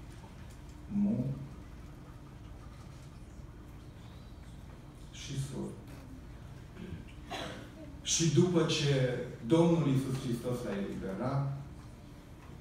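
A middle-aged man speaks calmly into a microphone in an echoing hall, with pauses between phrases.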